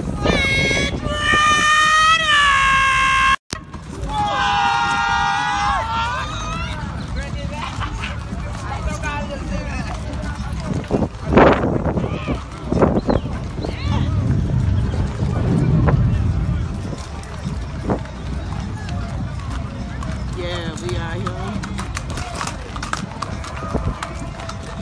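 Horse hooves clop slowly on pavement.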